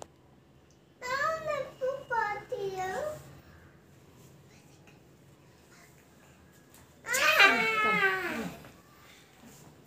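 A woman talks and laughs close by.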